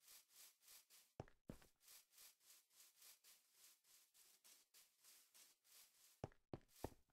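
Quick light footsteps patter along.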